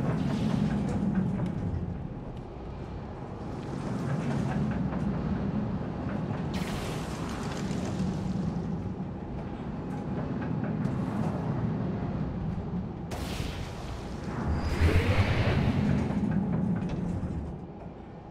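A roller coaster rattles and rumbles along its track.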